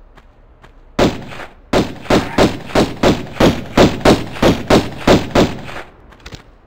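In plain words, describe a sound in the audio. Pistol shots ring out in quick, steady succession.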